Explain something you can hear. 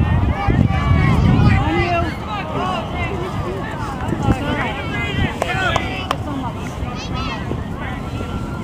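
Young players and spectators shout and call out across an open field.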